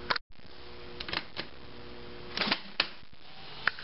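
Buttons on a jukebox click as they are pressed.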